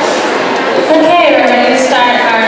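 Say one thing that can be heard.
A young woman sings into a microphone, heard through loudspeakers.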